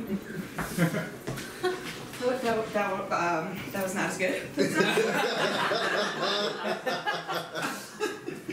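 Footsteps shuffle on a wooden floor.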